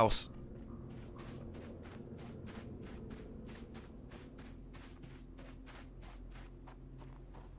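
Footsteps tread steadily on grass.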